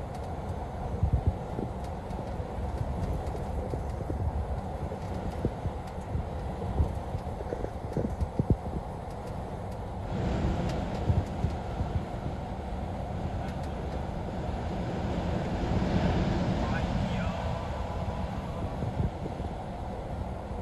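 Tyres hiss on a wet road, heard from inside a car.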